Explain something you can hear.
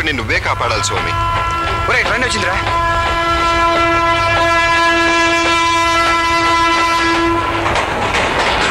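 A train horn blares long and steady.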